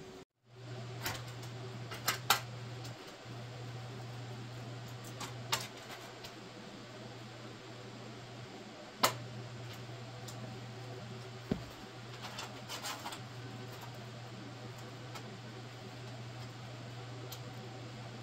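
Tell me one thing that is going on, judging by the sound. Metal clanks as a sheet of metal is fitted and clamped in place.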